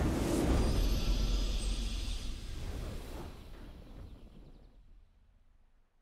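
A triumphant game fanfare rings out and slowly fades away.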